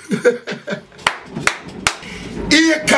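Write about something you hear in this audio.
A young man claps his hands.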